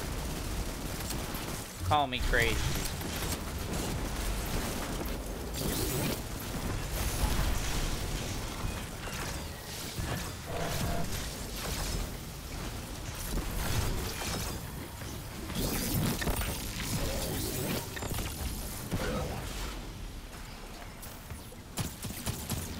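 Gunfire and energy blasts from a video game crackle and boom.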